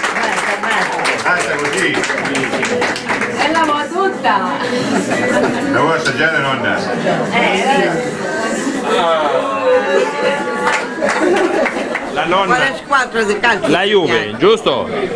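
A crowd of people chatters and laughs nearby.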